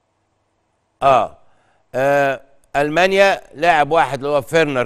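A man speaks calmly into a studio microphone.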